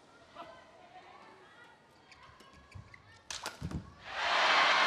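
A racket strikes a shuttlecock with sharp smacks.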